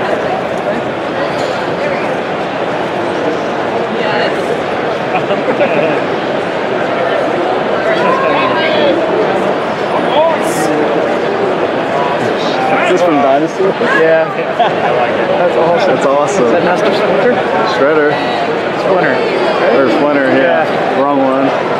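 A large crowd chatters steadily in a big echoing hall.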